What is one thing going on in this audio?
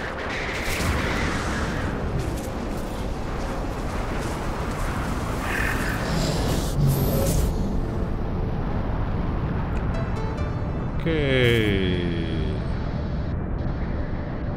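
A blizzard wind roars steadily.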